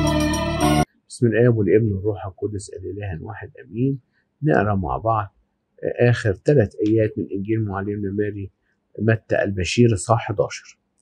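An elderly man speaks calmly and slowly, with pauses.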